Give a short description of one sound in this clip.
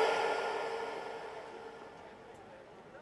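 Music plays loudly over loudspeakers outdoors and fades away.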